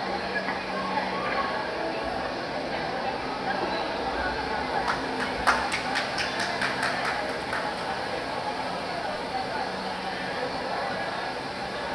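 Actors speak and call out on a large stage in an echoing hall.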